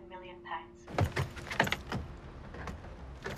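A metal walking frame clatters.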